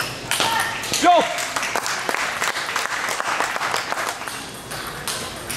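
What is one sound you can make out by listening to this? A crowd of spectators applauds.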